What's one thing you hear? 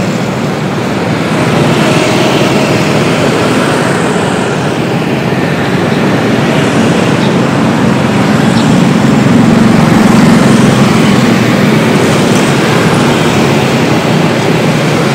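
Motorbike engines hum and buzz steadily nearby.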